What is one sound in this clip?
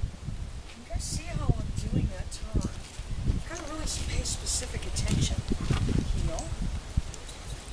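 A woman talks softly and encouragingly nearby.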